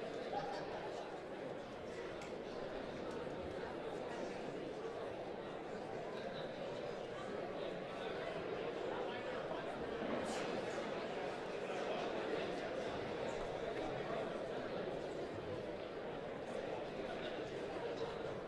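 A large audience murmurs and chatters in an echoing hall.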